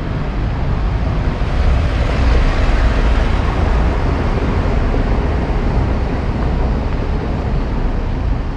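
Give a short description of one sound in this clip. A van drives past over cobblestones and moves away.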